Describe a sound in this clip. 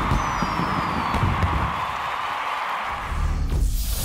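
Fireworks burst and crackle overhead.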